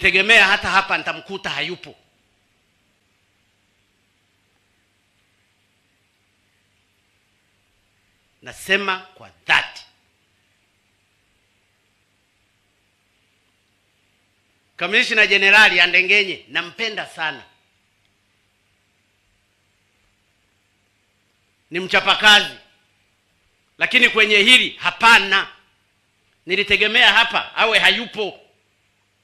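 A middle-aged man speaks slowly and firmly into a microphone over loudspeakers, with long pauses.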